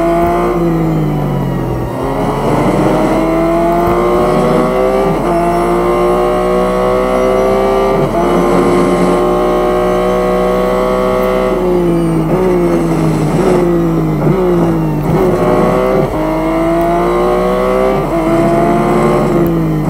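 A racing car engine roars loudly, rising in pitch through each gear and dropping with each shift.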